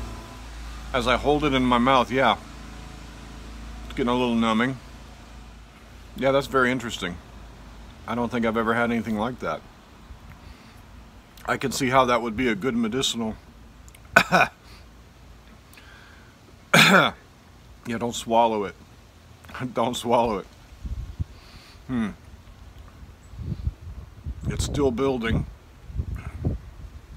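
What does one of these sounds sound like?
A middle-aged man talks calmly and close up, in short phrases with pauses.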